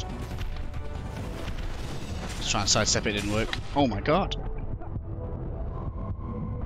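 Blades slash and strike in a fast fight.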